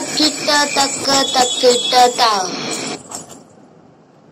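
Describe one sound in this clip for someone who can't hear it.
Ankle bells jingle sharply with each step.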